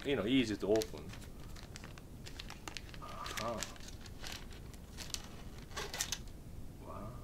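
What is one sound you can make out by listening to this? A plastic packet crinkles in a man's hands.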